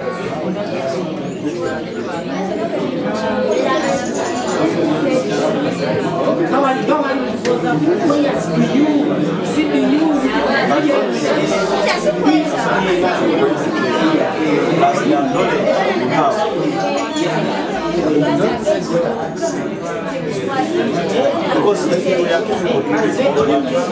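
Several people talk over one another nearby, in a babble of voices.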